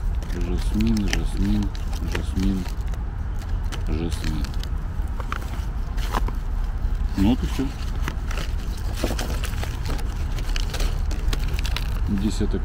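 Paper packets crinkle and rustle as hands handle them.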